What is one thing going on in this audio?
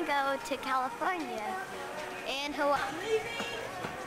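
A young child talks excitedly and close by.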